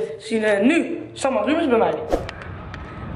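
A boy talks loudly and animatedly close to the microphone.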